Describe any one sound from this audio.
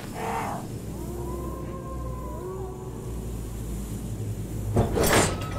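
An iron gate creaks slowly open.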